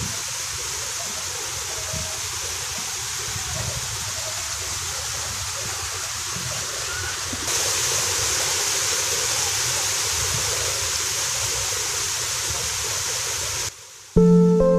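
Water rushes and splashes steadily down a waterfall.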